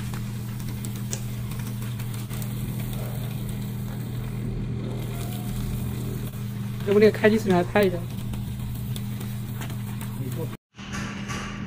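A paper shredder motor hums steadily.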